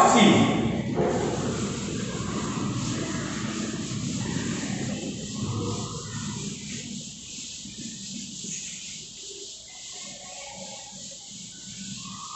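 A duster rubs across a chalkboard.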